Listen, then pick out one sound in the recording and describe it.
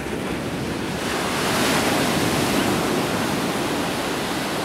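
A wave breaks and crashes close by.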